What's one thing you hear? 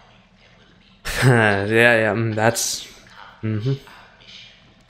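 A young man laughs loudly and excitedly close to a microphone.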